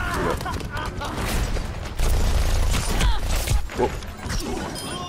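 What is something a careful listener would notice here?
Rapid gunfire crackles from a video game.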